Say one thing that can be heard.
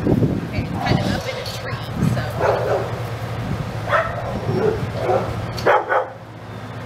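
A second woman nearby talks.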